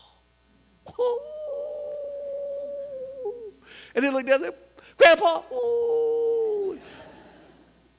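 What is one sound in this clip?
A man sings long held notes through a microphone.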